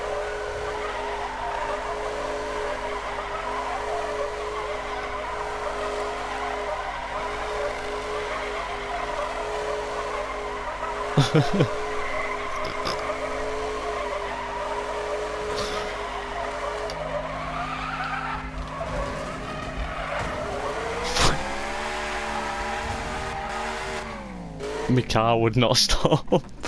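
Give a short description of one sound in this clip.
Tyres squeal on wet tarmac.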